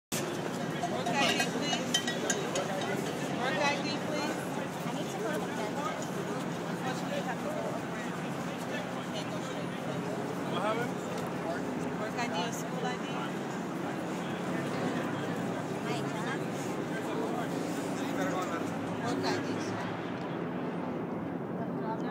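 Several men and women talk and call out nearby, outdoors.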